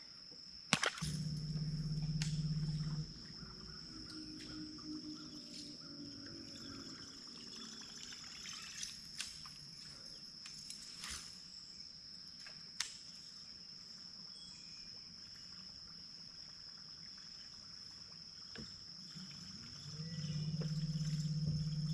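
An electric boat motor hums steadily.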